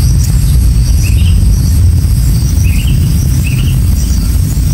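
A bird chirps softly nearby.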